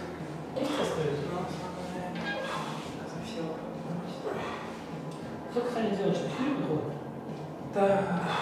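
A man talks with animation close by, in a room with some echo.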